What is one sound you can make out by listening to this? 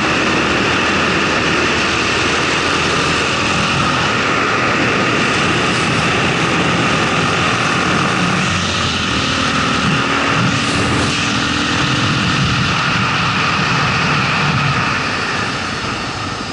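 Wind rushes past a motorcycle rider.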